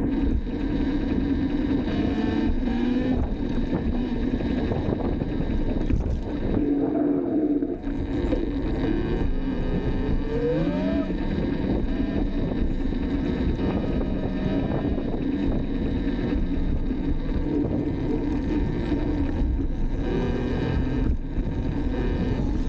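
Wind rushes loudly over the microphone while riding.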